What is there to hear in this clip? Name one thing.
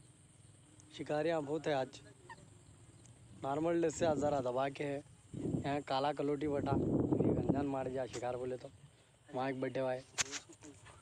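A young man speaks calmly close by, outdoors.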